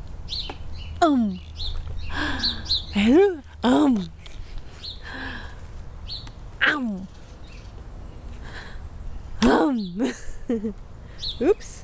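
A baby squeals and coos close by.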